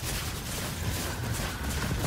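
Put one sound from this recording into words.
A laser weapon fires with a sizzling hum.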